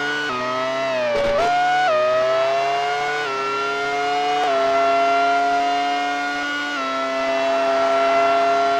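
A synthesized video game Formula One car engine whines as it accelerates through gear changes.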